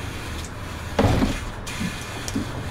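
Pneumatic bus doors close with a hiss and a thud.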